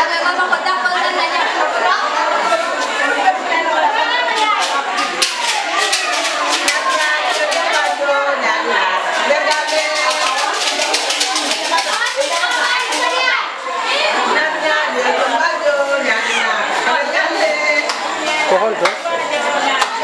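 A crowd of women sing and call out loudly close by.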